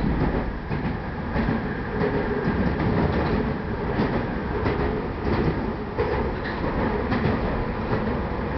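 A train rumbles steadily along elevated tracks.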